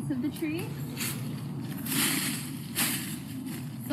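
Dry leaves rustle as a foot kicks through a plant.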